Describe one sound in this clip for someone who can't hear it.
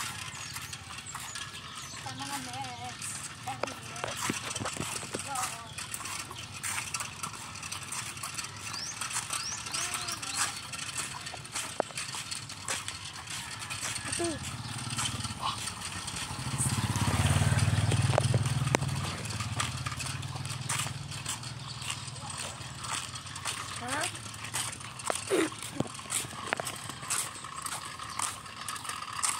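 Small scooter wheels roll and rattle on concrete.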